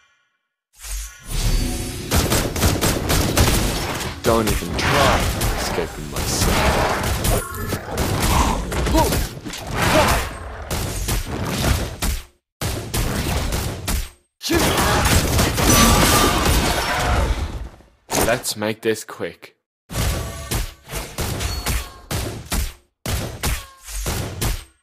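Game sword strikes clang repeatedly.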